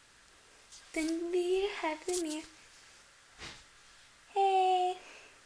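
A young woman speaks close by in a high, sing-song voice.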